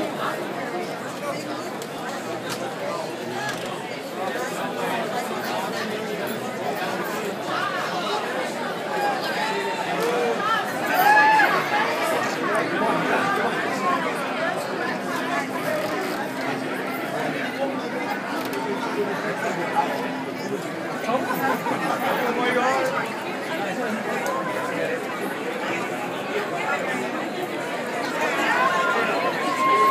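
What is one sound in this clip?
A large crowd chatters and calls out nearby, echoing in a big hall.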